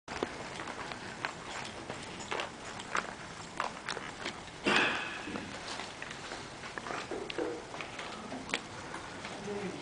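A crowd of adults murmurs and chatters in a large echoing hall.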